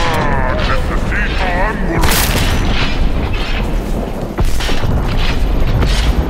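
Bullets hit and explode with loud bangs.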